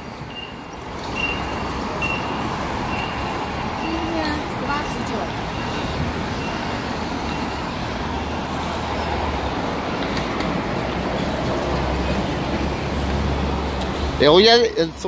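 Traffic hums steadily on a busy street outdoors.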